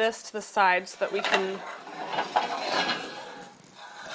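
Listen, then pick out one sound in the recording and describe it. A glass dish clatters onto a metal grate.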